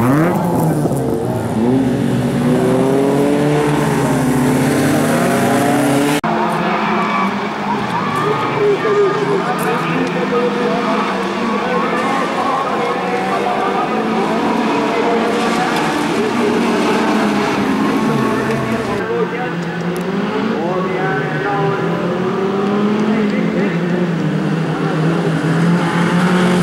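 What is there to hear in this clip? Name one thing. Racing car engines roar and rev loudly.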